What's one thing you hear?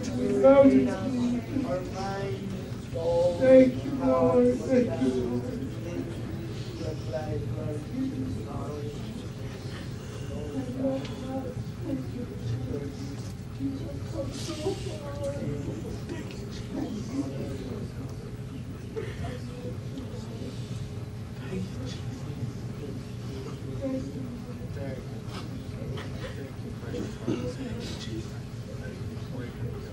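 A man prays aloud with fervour, close by.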